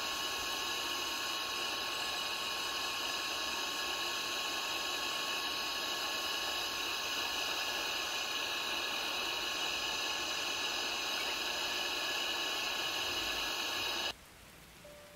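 An electric nail drill whirs steadily at high speed.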